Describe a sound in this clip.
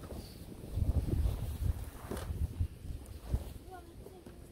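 A large canvas sheet flaps and rustles as a man shakes it out.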